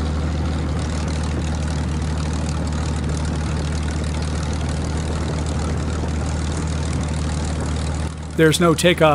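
A propeller engine drones steadily and loudly.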